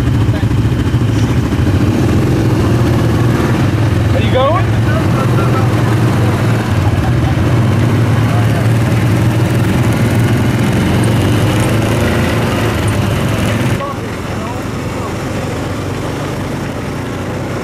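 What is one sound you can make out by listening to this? An engine rumbles steadily close by.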